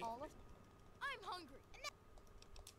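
A boy complains, heard through a speaker.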